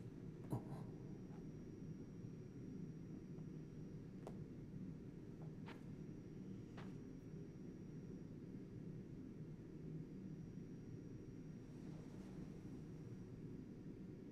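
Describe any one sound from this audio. A low wind rumbles steadily.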